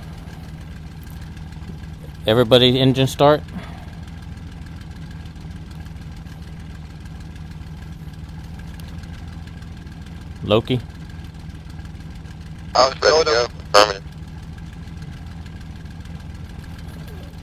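A propeller engine idles nearby with a steady low drone.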